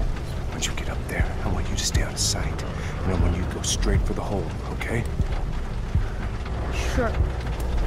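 A young man speaks quietly and urgently, close by.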